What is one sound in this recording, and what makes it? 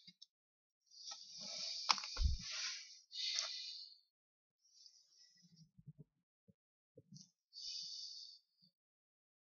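A stiff card rustles and scrapes as it is handled.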